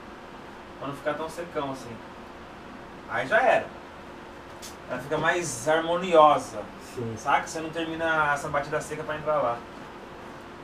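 A man speaks casually nearby.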